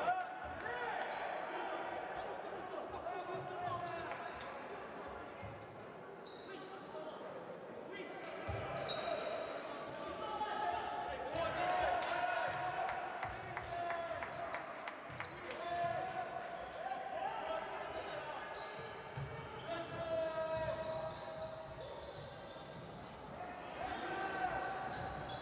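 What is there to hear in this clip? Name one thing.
A crowd murmurs and cheers in an echoing hall.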